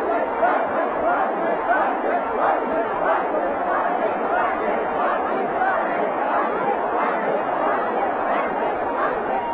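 A large crowd claps steadily.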